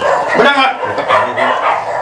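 A middle-aged man speaks firmly close by.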